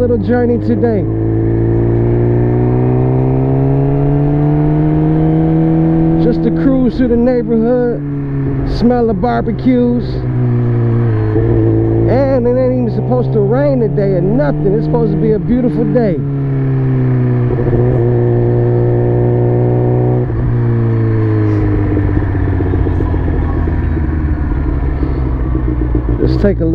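A motorcycle engine hums steadily, its pitch slowly rising and falling as it cruises.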